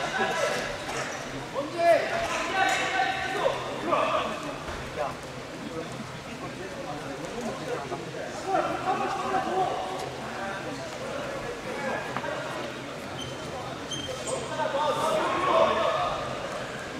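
Wrestling shoes shuffle and squeak on a mat in a large echoing hall.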